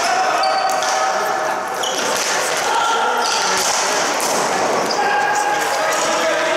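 Hockey sticks clack against a ball and the floor in an echoing hall.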